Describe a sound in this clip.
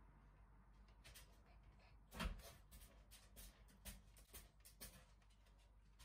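A metal fork clinks and scrapes against a plate.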